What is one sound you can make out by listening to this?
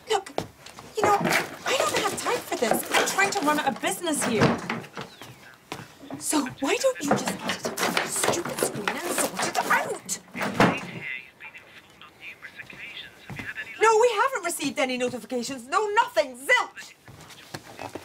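A woman speaks tensely on a phone, close by.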